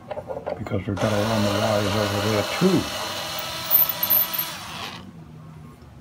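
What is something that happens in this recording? An electric screwdriver whirs steadily.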